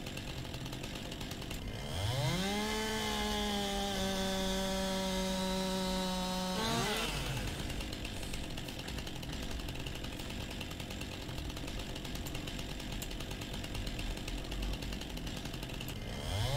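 A chainsaw engine idles steadily.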